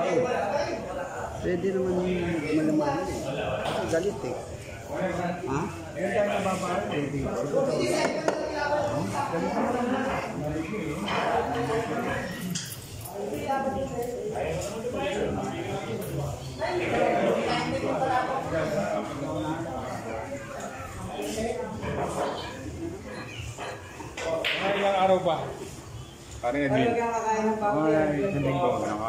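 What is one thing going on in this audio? Men talk nearby with animation.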